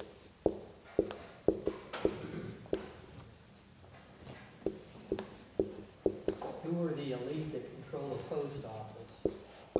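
A marker squeaks and taps against a board.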